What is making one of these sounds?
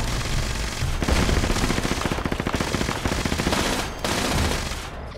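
A laser gun fires in rapid bursts.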